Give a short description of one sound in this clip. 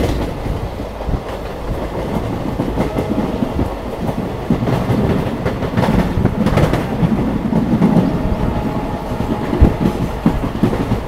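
A train rumbles and clatters steadily along the tracks.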